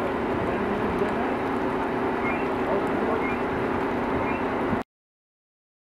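A fire crackles and hisses on a burning roof.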